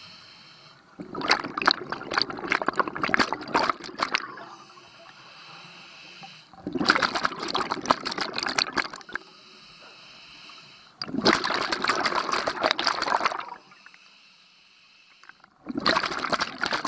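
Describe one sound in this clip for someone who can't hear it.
Bubbles from a diver's regulator rush and gurgle loudly underwater in regular bursts.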